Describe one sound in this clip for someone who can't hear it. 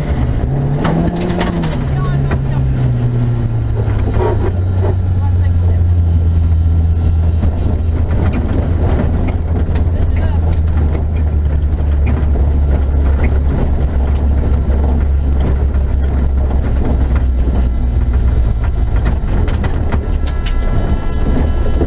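A rally car engine roars loudly, revving up and then holding a steady drone.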